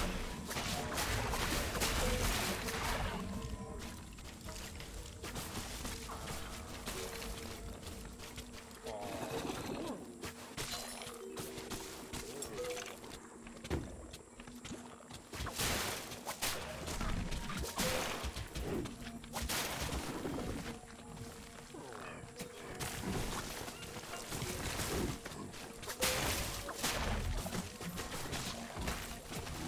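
Game weapons clash and zap in quick bursts during a fight.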